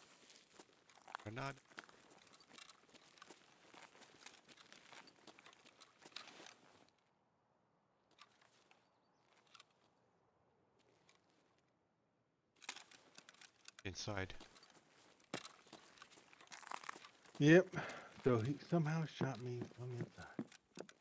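Footsteps crunch and tap on hard ground.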